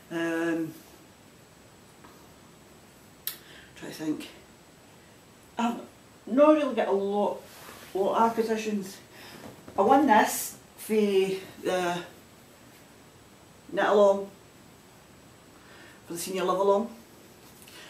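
A middle-aged woman talks calmly and close by, with pauses.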